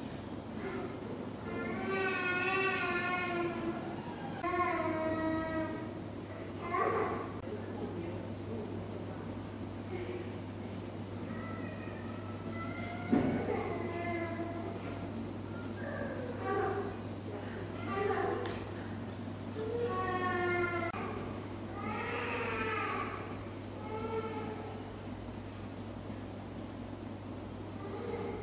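A woman talks softly nearby.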